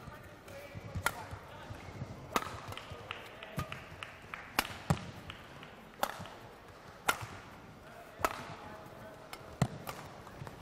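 A shuttlecock is struck sharply back and forth with rackets in a large echoing hall.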